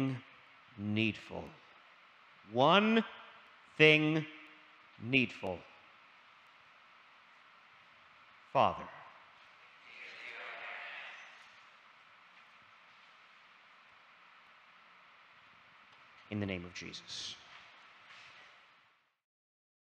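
A man speaks slowly and with feeling through a microphone, in an echoing hall.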